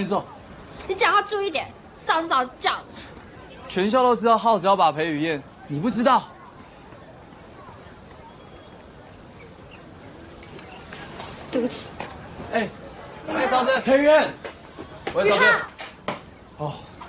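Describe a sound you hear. Young men talk and tease with animation nearby.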